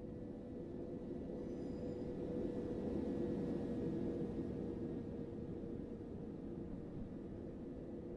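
A passing train rumbles by close alongside.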